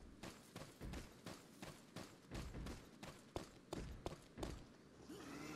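Footsteps crunch on dry leaves and dirt at a steady walking pace.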